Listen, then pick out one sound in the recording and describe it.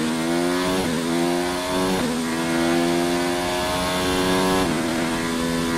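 A racing car engine screams at high revs, rising in pitch and dropping sharply with each gear change.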